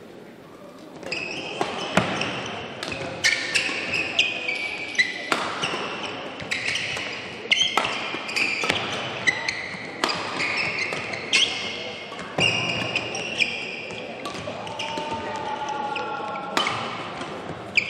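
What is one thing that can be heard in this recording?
Rackets strike a shuttlecock back and forth in quick, sharp smacks.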